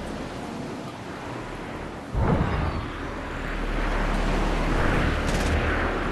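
Wind rushes past a glider in flight, growing louder.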